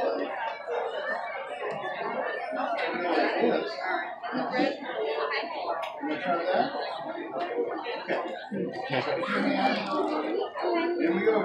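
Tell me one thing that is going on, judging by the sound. A young boy talks.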